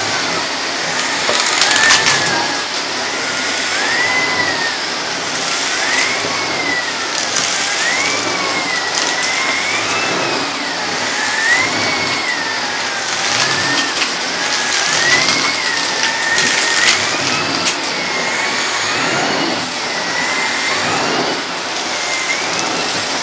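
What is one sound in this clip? A vacuum cleaner roars steadily, its whine rising and falling as the nozzle sweeps back and forth.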